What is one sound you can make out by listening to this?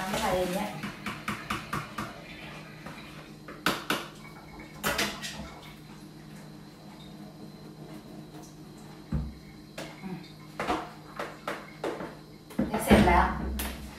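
Dishes and bowls clatter and clink.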